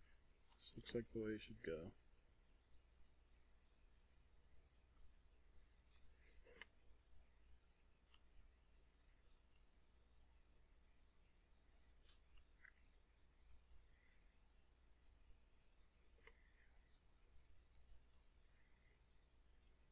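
Small tweezers tap and click softly against a circuit board.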